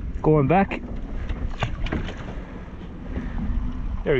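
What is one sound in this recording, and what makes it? A fish splashes as it drops back into the water.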